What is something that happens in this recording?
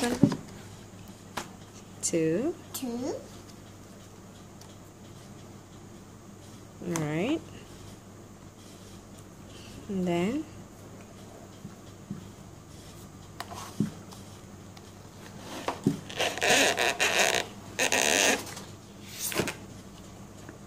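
Books and thin card rustle and thump as they are handled.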